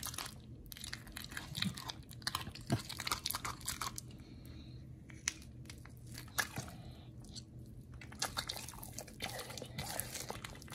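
A dog chews and crunches noisily on a chew toy close by.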